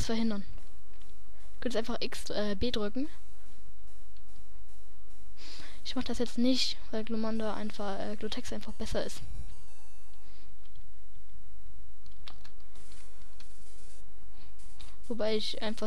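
Chiptune video game music plays with beeping tones.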